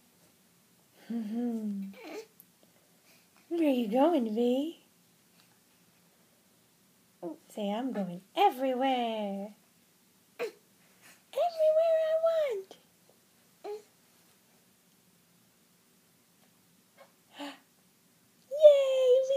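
A baby babbles and coos nearby in short bursts.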